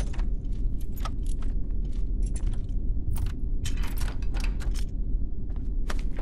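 A metal lock clicks and rattles as it is worked.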